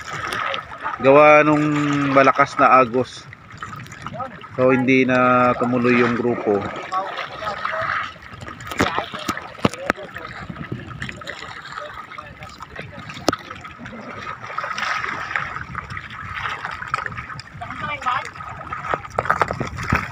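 Waves lap against a bamboo raft.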